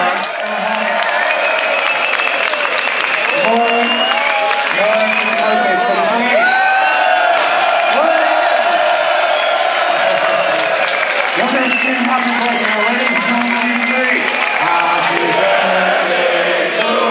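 A band plays loud rock music through loudspeakers.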